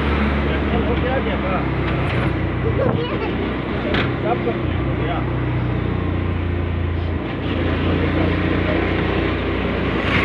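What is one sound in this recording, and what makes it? Motorbikes pass close by on the road.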